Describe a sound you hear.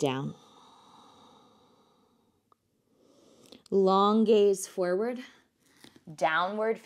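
A woman speaks calmly and slowly, close to a microphone.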